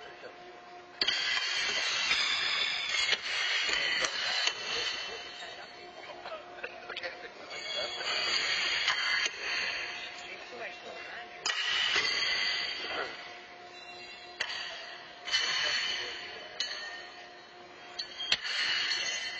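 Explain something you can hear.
Horseshoes clang against steel stakes in a large echoing hall.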